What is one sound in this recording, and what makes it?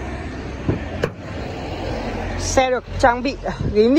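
A car door unlatches with a click and swings open.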